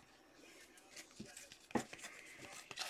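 Trading cards rustle and flick between a person's hands.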